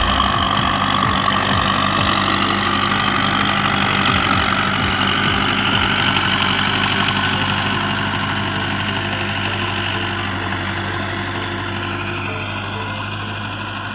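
A tractor engine rumbles steadily close by and slowly fades.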